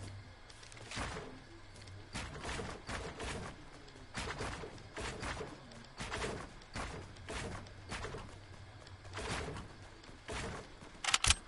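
Building pieces snap into place with quick, repeated knocks.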